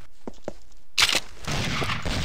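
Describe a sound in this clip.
A rifle fires a single loud, sharp shot.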